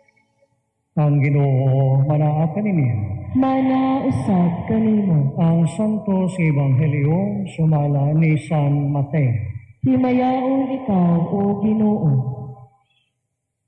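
A man chants a prayer through a microphone.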